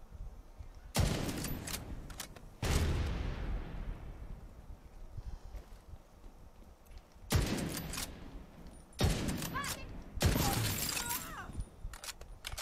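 Gunshots fire loudly in quick bursts.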